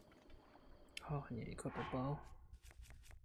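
A young man speaks briefly into a microphone, close by.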